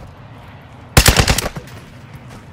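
A rifle fires a short, loud burst close by.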